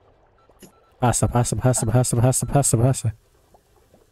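A young man speaks loudly and with animation, close to a microphone.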